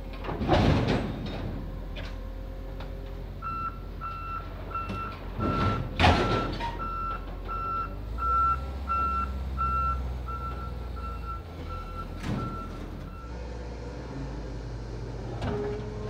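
A forklift engine rumbles steadily.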